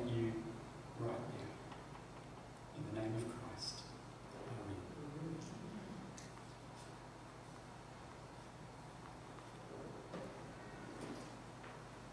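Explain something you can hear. A man speaks calmly into a microphone in an echoing hall, with long pauses.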